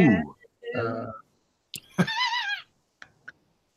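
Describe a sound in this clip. A man speaks over an online call, heard through a headset microphone.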